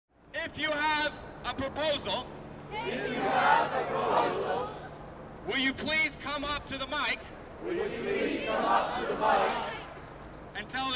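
A young man shouts phrases loudly outdoors.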